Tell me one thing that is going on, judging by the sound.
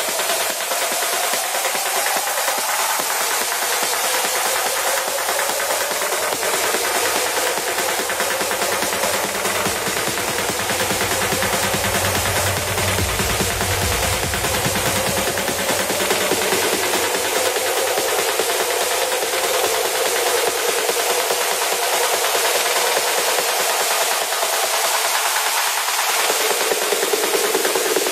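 Electronic dance music plays steadily with sweeping, filtered tones.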